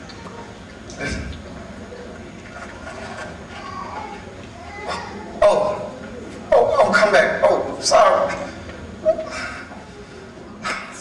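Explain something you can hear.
A man speaks with animation in a large echoing hall.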